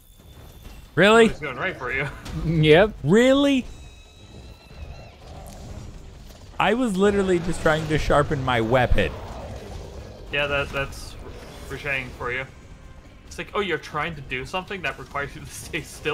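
A large beast roars and growls loudly.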